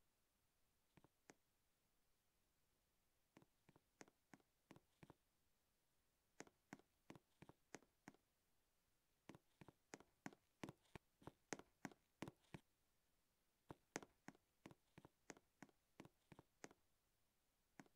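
Footsteps tap quickly in bursts on a hard floor.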